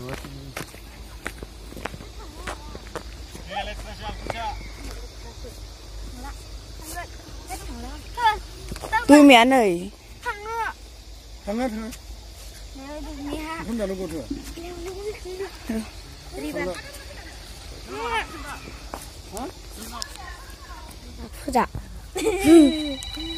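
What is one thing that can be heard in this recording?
Young girls talk and laugh nearby.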